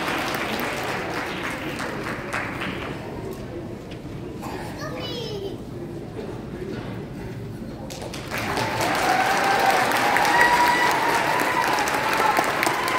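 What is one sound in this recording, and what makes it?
A piano plays in a large echoing hall.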